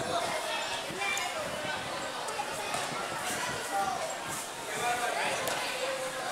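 A crowd of children and adults chatters and calls out nearby, outdoors.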